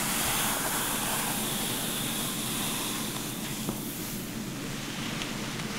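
Hands rustle softly through wet hair, close by.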